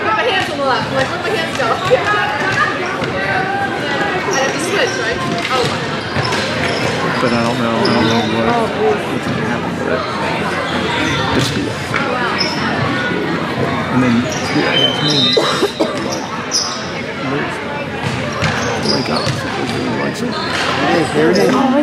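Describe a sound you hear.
Young women shout and call out to each other across a large echoing hall.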